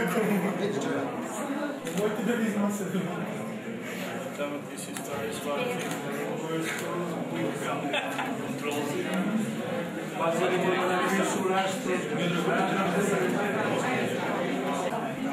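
A crowd of men and women chatter and murmur nearby.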